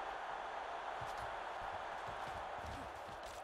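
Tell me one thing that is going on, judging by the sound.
Football players thud as they collide.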